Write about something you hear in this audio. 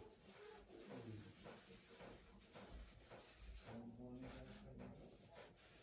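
A cloth rubs softly against skin.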